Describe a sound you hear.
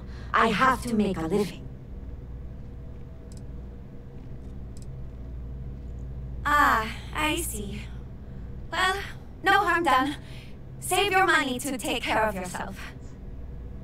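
A woman speaks calmly and apologetically, close by.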